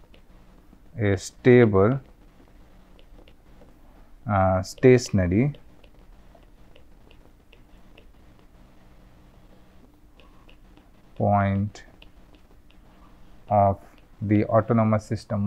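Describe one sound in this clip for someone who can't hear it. A man speaks calmly and slowly into a close microphone, in short phrases with pauses.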